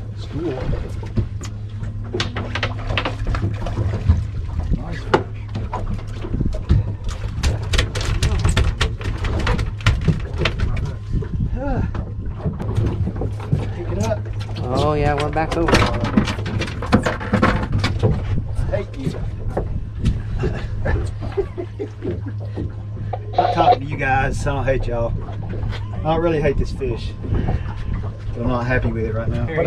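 Thumps and knocks sound on a boat deck.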